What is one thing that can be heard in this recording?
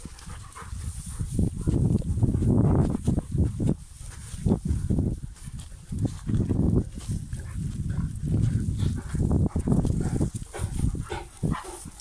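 Footsteps crunch on a dirt road.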